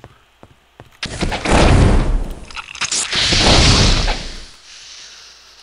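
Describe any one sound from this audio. A magical blast roars and crackles loudly.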